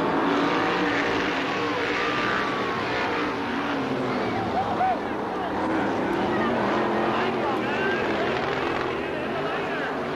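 Racing car engines roar loudly and whine as they speed around a dirt track.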